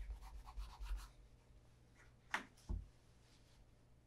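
A shoe is set down on a wooden table with a light knock.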